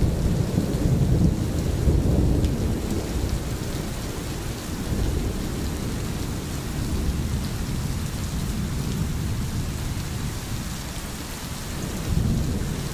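A stream babbles and rushes over stones.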